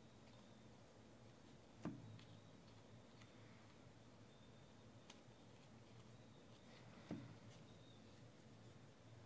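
Trading cards rustle and flick as they are shuffled by hand.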